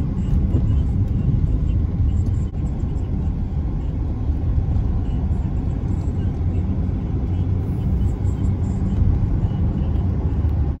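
A car engine hums and tyres rumble steadily on a wet road.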